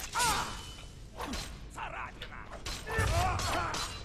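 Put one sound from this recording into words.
Blows strike hard in a fight.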